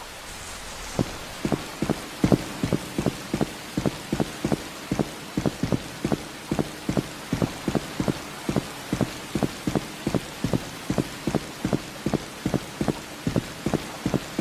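Footsteps thud at a steady, quick pace on hard ground.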